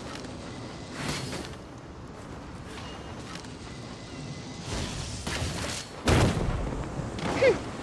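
A magical weapon swishes and crackles with bursts of energy.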